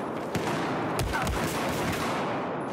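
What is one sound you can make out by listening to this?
Gunshots ring out close by.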